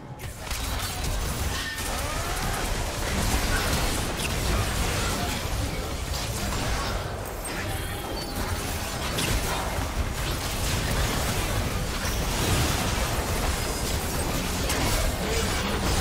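Video game weapons strike with sharp hits.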